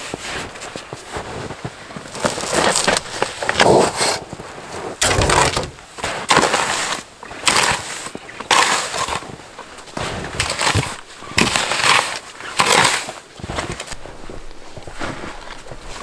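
A wooden board scrapes and knocks against snow.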